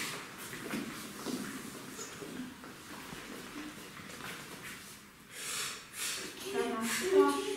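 A young boy speaks and calls out nearby.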